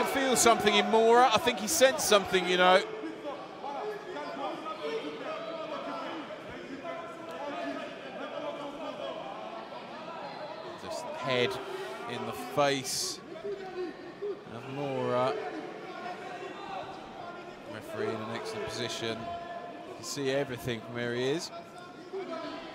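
Spectators in a crowd shout loudly, then keep calling out.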